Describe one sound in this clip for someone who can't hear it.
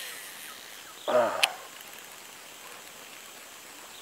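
A fishing reel clicks and whirs as its handle is turned.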